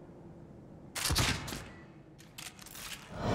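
A gun fires loud shots in an echoing room.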